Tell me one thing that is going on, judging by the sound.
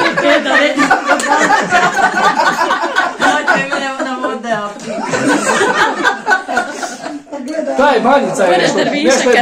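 Women laugh loudly together.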